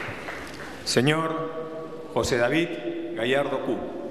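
A man speaks solemnly into a microphone in an echoing hall.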